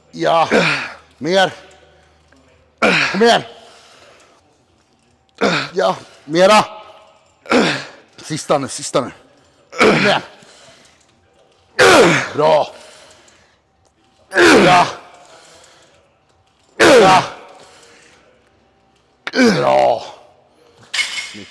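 A man grunts and exhales hard with each pull.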